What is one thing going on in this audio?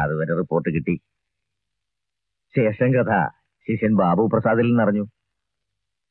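A middle-aged man with a deep voice speaks calmly nearby.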